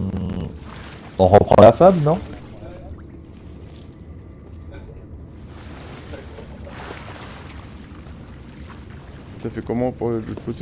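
Water gurgles and bubbles underwater.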